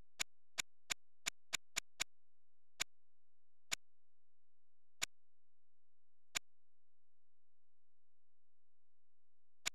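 A menu makes short sharp ticks as the selection moves.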